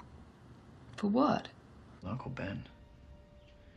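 An elderly woman speaks softly and gravely.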